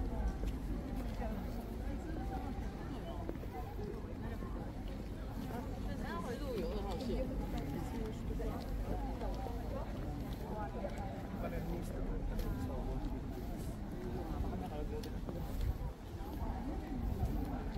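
People chatter and talk in the distance outdoors.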